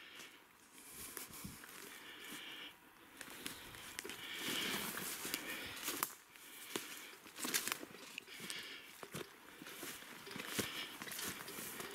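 Twigs snap underfoot now and then.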